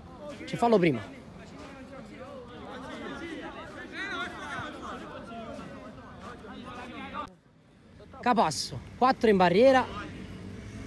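Young men shout loudly outdoors.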